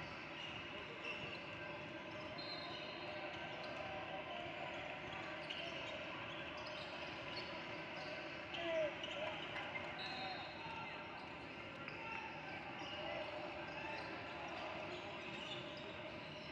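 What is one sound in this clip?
A crowd chatters and calls out in a large echoing gym.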